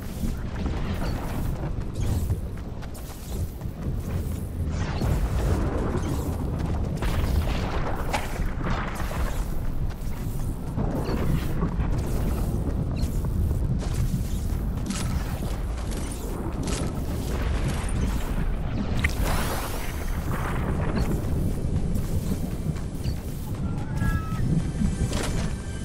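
Footsteps patter quickly on the ground as a game character runs.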